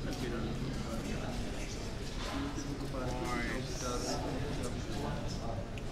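Several adults chat nearby outdoors.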